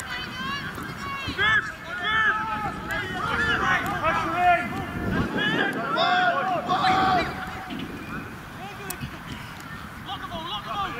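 Young women shout and call out loudly outdoors across an open field.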